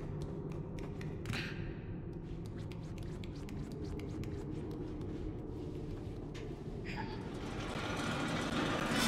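Small footsteps patter lightly on a hard floor.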